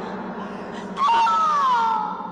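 A young woman cries out in anguish.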